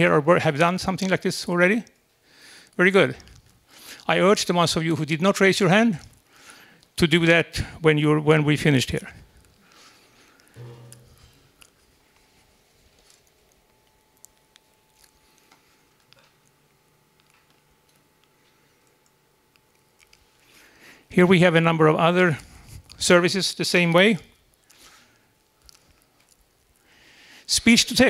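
A middle-aged man speaks calmly through a microphone, in bursts with pauses.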